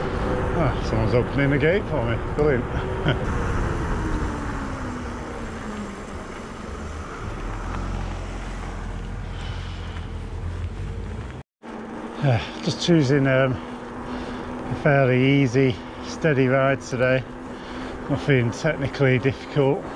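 Bicycle tyres roll over a paved road.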